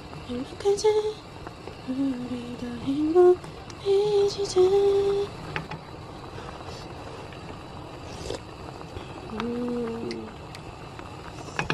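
Soup bubbles and simmers in a pot.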